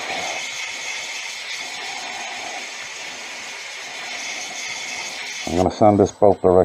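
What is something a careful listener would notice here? A lathe motor whirs steadily.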